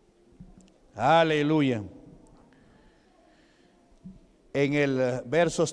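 A man speaks loudly and with emotion through a microphone in an echoing hall.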